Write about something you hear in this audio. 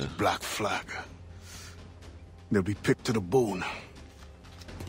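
A man speaks gruffly and intently, close up.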